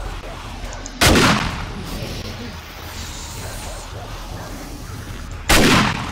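A gun fires loudly with a short echo.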